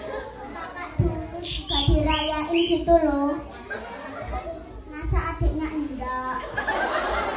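A young girl sings into a microphone through loudspeakers in a large room.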